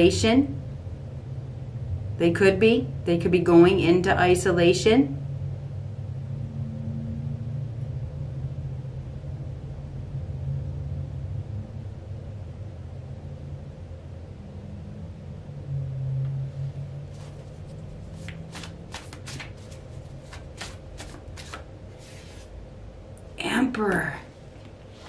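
A middle-aged woman speaks calmly, close to a microphone, in short bursts.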